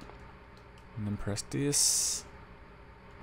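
An electronic control panel beeps.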